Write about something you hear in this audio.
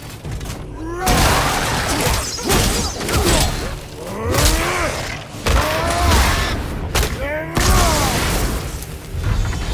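A warrior grunts and yells with effort.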